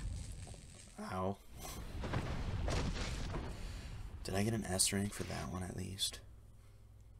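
A young man speaks into a microphone.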